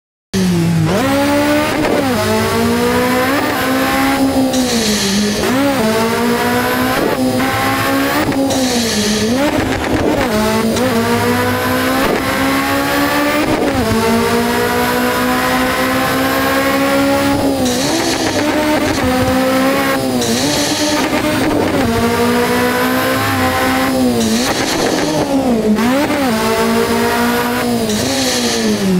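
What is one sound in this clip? A car engine revs high, rising in pitch and dropping again with each gear change.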